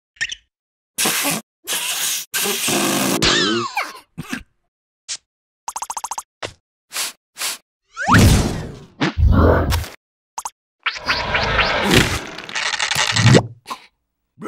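A rubbery balloon inflates with a stretching squeak.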